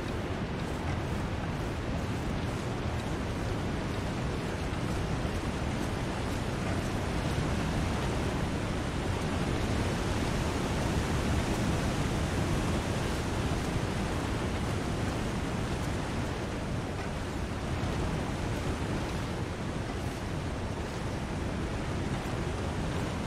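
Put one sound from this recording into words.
Strong wind blows steadily outdoors.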